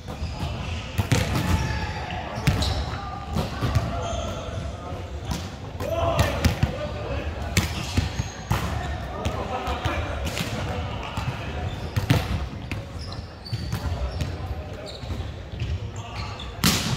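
A volleyball thumps off players' hands and arms, echoing in a large hall.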